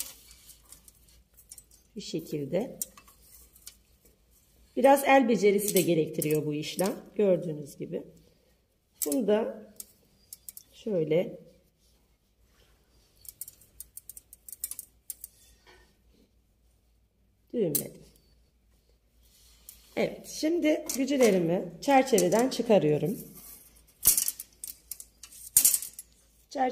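Thin metal wires clink and rattle softly as they are handled.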